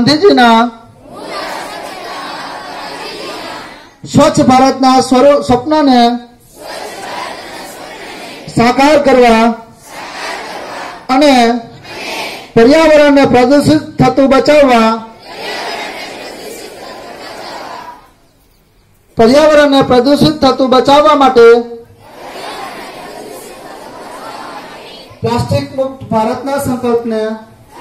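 A man chants loudly in a singing voice through a microphone and loudspeaker.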